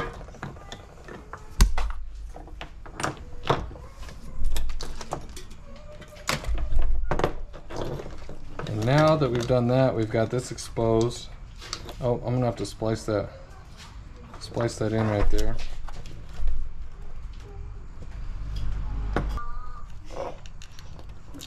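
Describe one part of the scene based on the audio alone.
Wires and small parts rustle and clatter as hands handle them.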